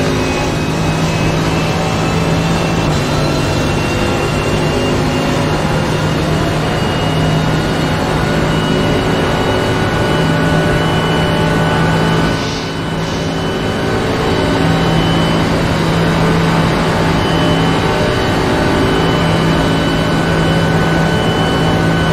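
A racing car engine roars loudly at high speed, shifting up through the gears.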